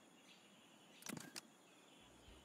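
A game menu pops open with a short click.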